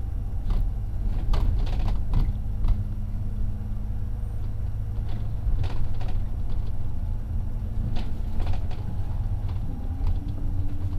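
A vehicle engine rumbles steadily while driving along a road.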